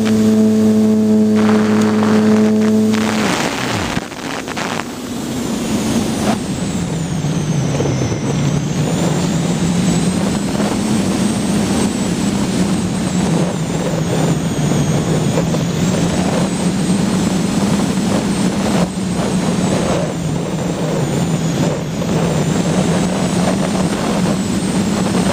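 Wind rushes past the aircraft.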